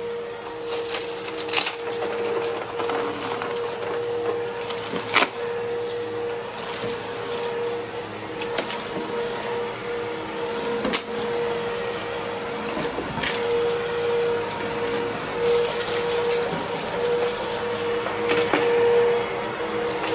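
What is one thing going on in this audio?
Grit rattles and clicks up into a vacuum cleaner.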